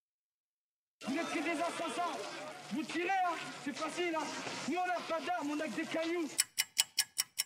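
A man shouts angrily outdoors.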